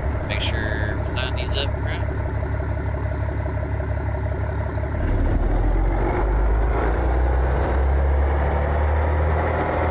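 Wooden bridge planks clatter under a truck's tyres.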